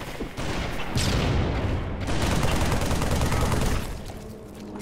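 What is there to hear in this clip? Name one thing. A grenade explodes with a loud, deep rumbling blast.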